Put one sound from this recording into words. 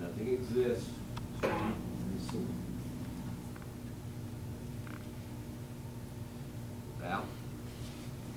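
An elderly man speaks calmly, giving instructions.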